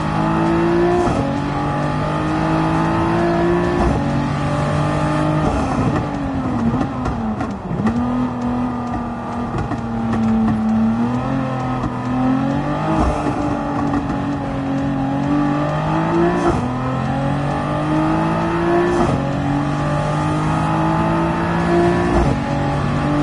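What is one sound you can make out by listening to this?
Gear changes click sharply as a racing car shifts.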